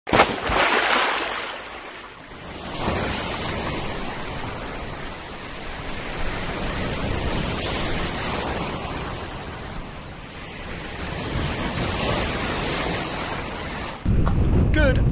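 Waves splash and wash over shallow water.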